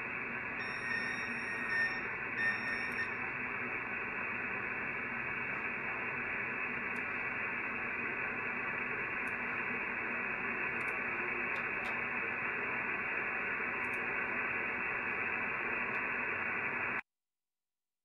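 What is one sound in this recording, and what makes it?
A radio receiver hisses with steady static.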